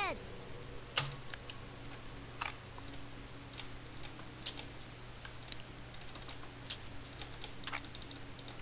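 Short game menu clicks sound now and then.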